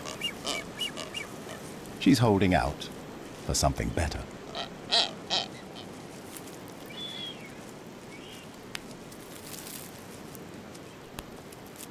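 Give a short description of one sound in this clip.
Seabirds give whistling calls.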